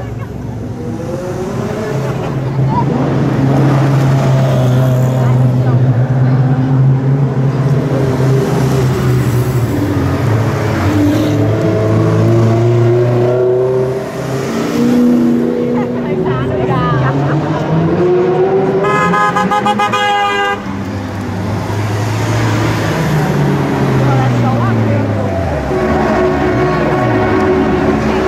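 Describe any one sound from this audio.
Sports car engines roar loudly as cars pass close by one after another.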